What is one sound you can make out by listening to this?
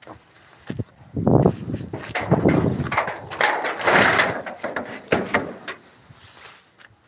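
A wooden latch rattles and knocks against a post.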